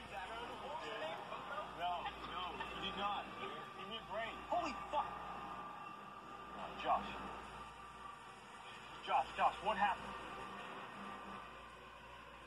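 A young man speaks tensely, heard through a television speaker.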